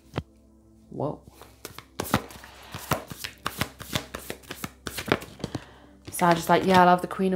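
Cards shuffle and tap together in a woman's hands.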